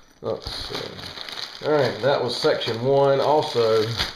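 A plastic bag crinkles in a hand.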